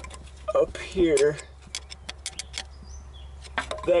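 A screwdriver scrapes against metal.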